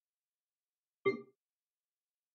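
A menu chime rings briefly.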